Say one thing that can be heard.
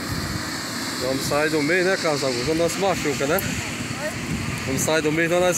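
A young boy talks nearby.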